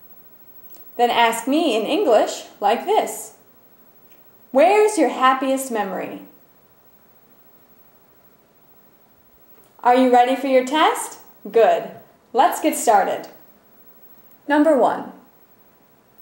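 A young woman speaks clearly and in a friendly tone into a close microphone, in short phrases with pauses.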